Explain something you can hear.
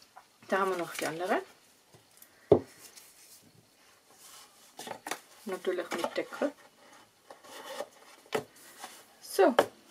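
Paper boxes are set down with soft knocks on a table.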